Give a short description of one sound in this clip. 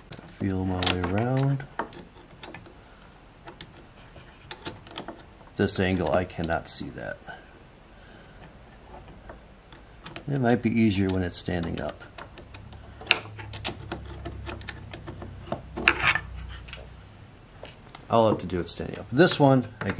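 Small tools click and knock against wooden parts.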